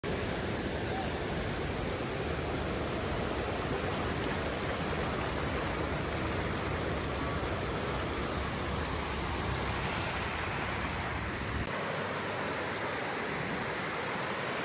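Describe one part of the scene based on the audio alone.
A mountain stream rushes and splashes loudly over rocks close by.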